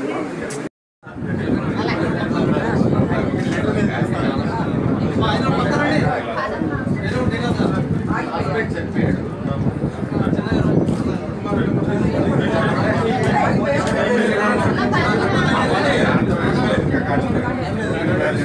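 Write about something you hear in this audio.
A crowd of women talk and call out excitedly close by.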